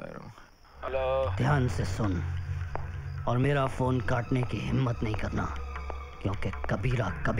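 A man speaks tensely into a telephone.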